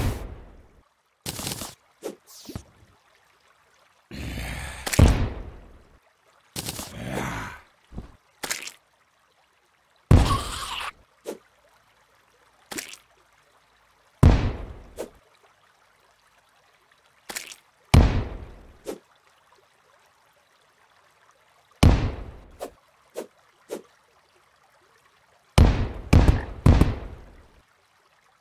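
Short digging and crunching game sounds play in quick bursts, with pauses between them.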